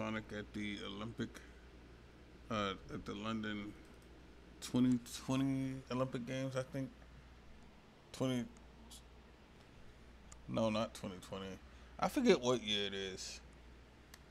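A young man talks casually into a headset microphone, close by.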